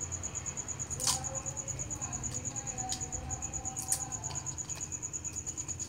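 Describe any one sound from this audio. Packing tape screeches as it is pulled off the roll.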